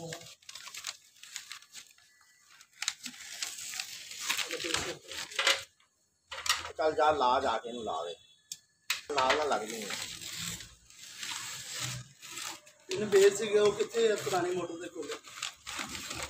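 Masking tape rips off a roll.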